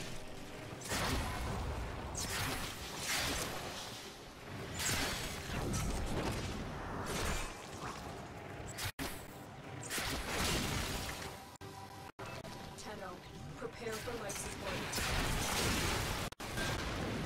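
Gunfire and energy blasts crackle in bursts.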